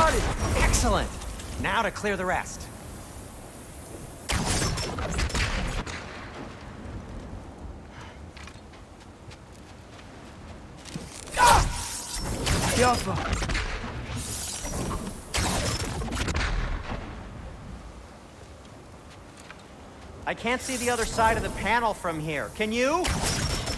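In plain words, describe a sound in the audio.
A thrown spear strikes with an icy crackle.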